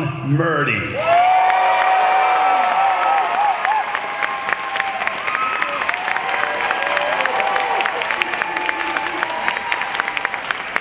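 A crowd cheers and whoops in a large hall.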